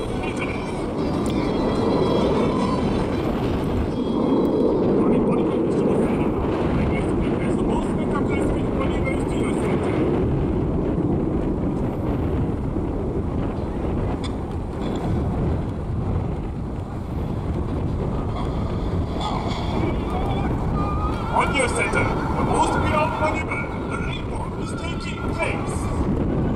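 A formation of jet planes roars overhead with a steady, rumbling drone.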